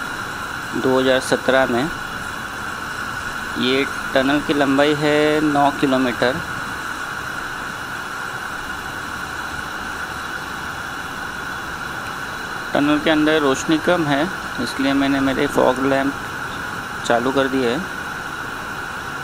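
Wind rushes steadily past.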